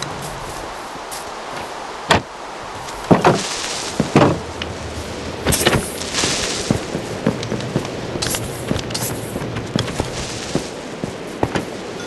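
Footsteps tap and creak on wooden ladder rungs.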